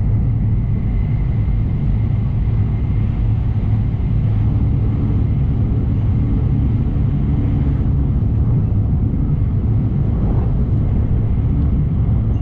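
A train rumbles steadily at speed, heard from inside a carriage.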